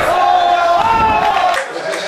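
A wrestler thuds onto the mat.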